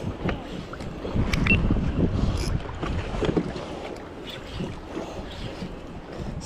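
A fishing reel clicks as its handle is turned.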